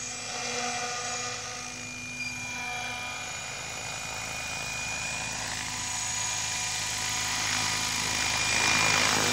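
A small model helicopter's motor whines steadily and grows louder as it comes closer.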